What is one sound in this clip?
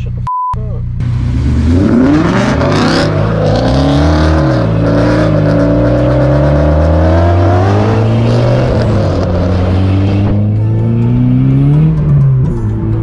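A car engine roars close by, rising and falling in pitch.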